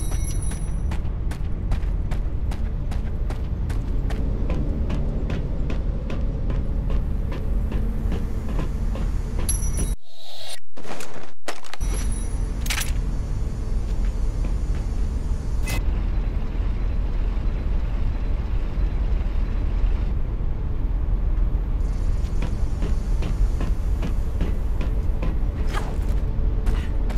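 Quick footsteps clatter on hard floor and metal stairs.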